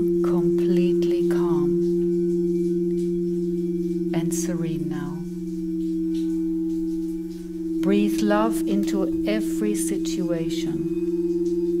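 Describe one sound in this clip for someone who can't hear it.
A woman sings softly into a microphone.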